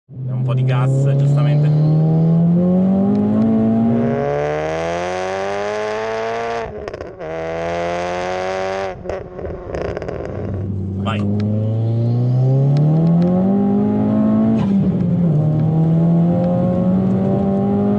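A car engine accelerates hard, rising in pitch and dropping with each gear change.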